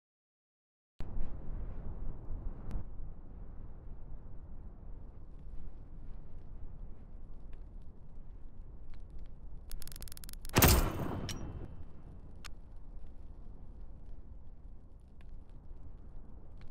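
A fire burns with a low, steady rumble.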